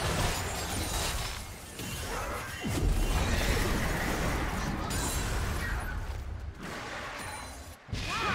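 Game spell effects whoosh and crackle during a fast fight.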